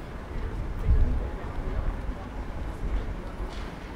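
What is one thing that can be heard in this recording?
A young woman speaks into a microphone nearby.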